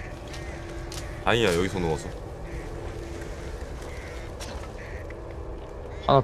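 Footsteps run through tall grass.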